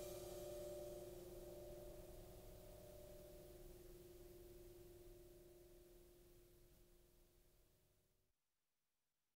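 A piano chord rings out and slowly fades away.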